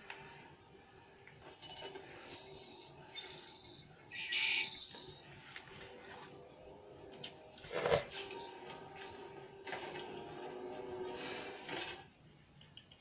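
Video game sound effects beep and whoosh from a television speaker.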